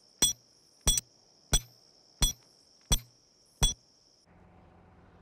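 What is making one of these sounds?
A hammer strikes a metal tent stake with sharp ringing clangs.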